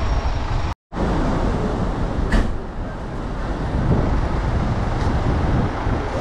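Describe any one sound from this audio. Large buses idle nearby with a low engine rumble.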